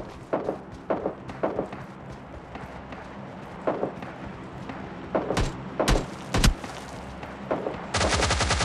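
Footsteps crunch over grass and dirt at a run.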